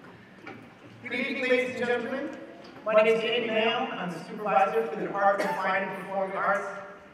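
A man speaks calmly into a microphone, heard through loudspeakers in a large hall.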